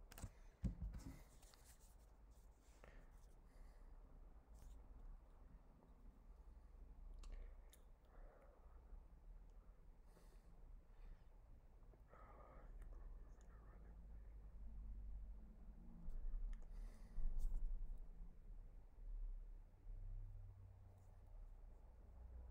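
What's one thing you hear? A man speaks quietly and calmly close to a microphone.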